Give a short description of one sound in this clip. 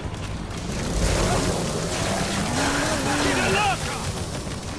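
A helicopter's rotor thumps nearby.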